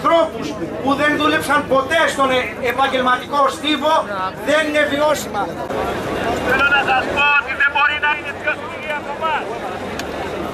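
A man speaks forcefully into a microphone over a loudspeaker, outdoors.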